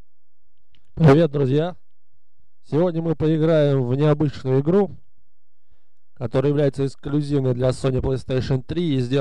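A man speaks calmly and close up.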